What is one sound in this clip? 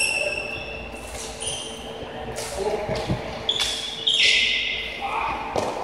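Plastic sticks clack against a ball in the distance.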